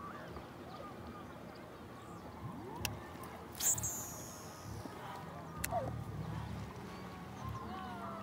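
A paddle dips and splashes in water.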